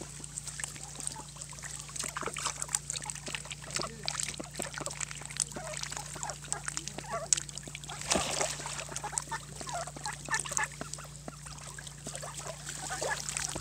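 A duck pecks and nibbles at a hand with quick clicks.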